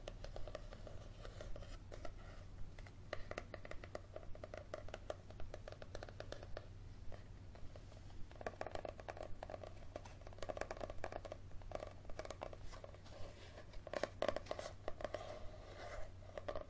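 Fingernails tap and scratch on a book cover close up.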